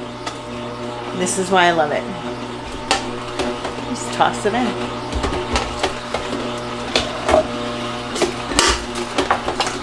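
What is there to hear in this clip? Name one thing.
Fruit knocks and thuds as it drops into a juicer.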